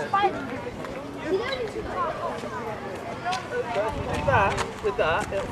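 Young children shout and chatter excitedly nearby outdoors.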